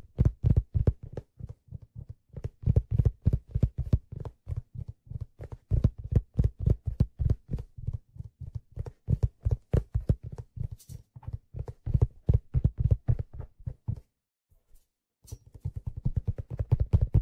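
Fingers tap and brush rapidly on a hollow object close to a microphone.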